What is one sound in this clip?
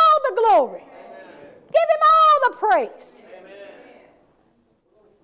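A woman preaches with animation through a microphone.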